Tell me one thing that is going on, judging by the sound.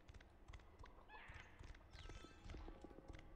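A magic spell crackles and sparkles.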